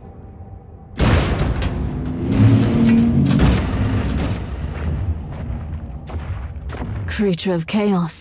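A large beast growls and roars deeply.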